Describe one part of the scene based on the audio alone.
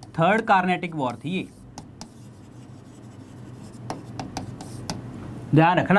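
A marker taps and squeaks on a board.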